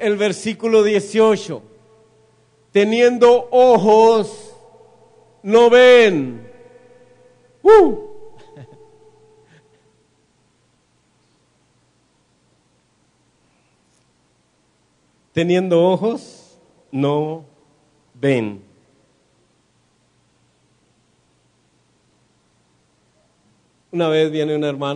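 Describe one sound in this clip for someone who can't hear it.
A man speaks with animation through a microphone in an echoing hall, pausing now and then.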